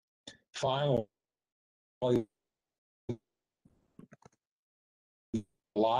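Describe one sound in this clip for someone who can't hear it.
An older man speaks in short bursts over an online call.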